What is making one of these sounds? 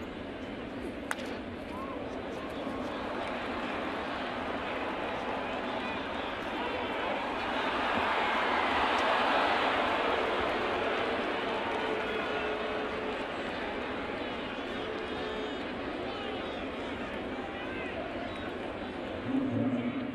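A large stadium crowd cheers, swelling to a roar and then settling.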